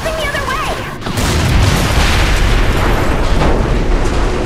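A loud explosion bursts and rumbles.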